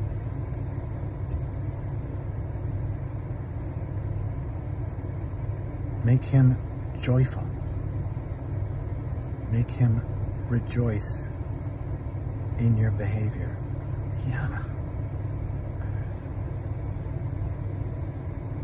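A car engine hums low and steady inside the cabin.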